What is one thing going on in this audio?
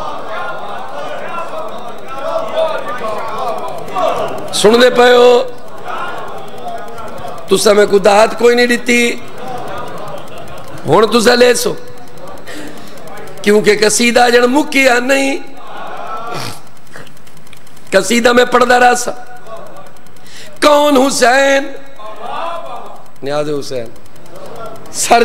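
A crowd of men murmurs in the background.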